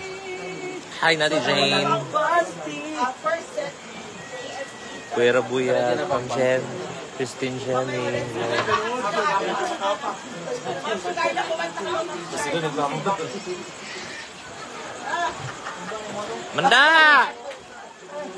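A young woman talks animatedly close to the microphone.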